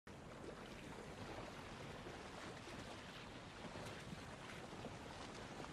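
Open sea water laps and splashes steadily.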